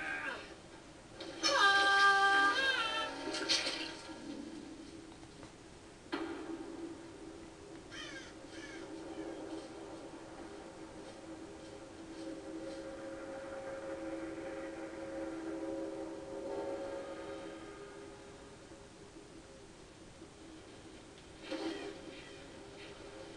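Eerie music with a low drone plays through television speakers in a room.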